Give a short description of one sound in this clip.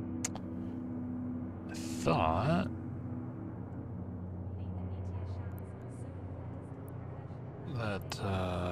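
A spaceship's engine hums low and steady.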